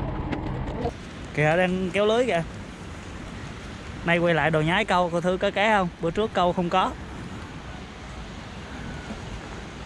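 Small waves wash gently onto a sandy beach.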